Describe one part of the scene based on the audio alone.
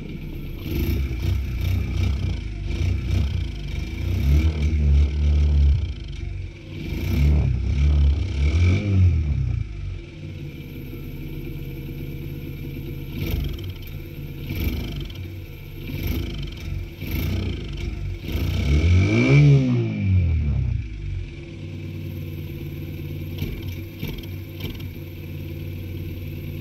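A small motorcycle engine idles close by, its revs rising and falling as the throttle is blipped.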